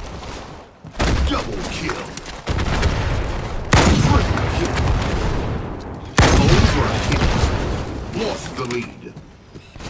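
A sniper rifle fires loud, booming shots that echo away.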